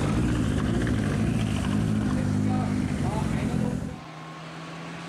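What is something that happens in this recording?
A car engine idles with a low, rough rumble.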